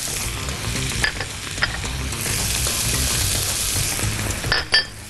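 A spoon clinks and scrapes against a frying pan.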